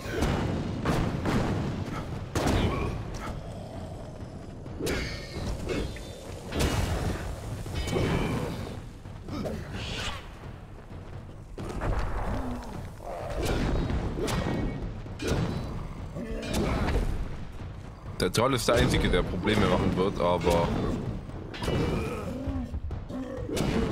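Fiery blasts burst and roar.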